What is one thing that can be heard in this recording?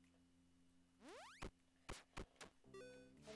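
Short electronic blips sound as menu options are picked.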